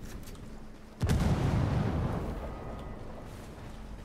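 An explosion booms nearby and rumbles away.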